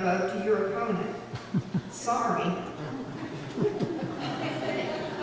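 A woman speaks calmly into a microphone, heard through a loudspeaker.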